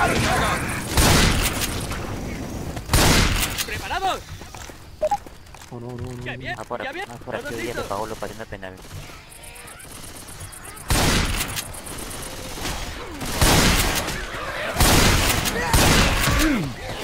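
Shotgun blasts go off loudly, several times.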